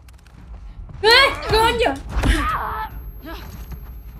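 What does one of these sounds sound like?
A young woman talks and exclaims into a close microphone.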